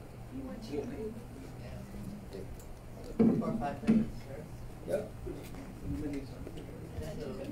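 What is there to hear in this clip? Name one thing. A middle-aged woman speaks calmly into a room with a slight echo.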